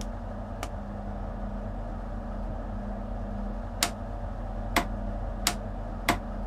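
A train's engine idles with a low, steady hum.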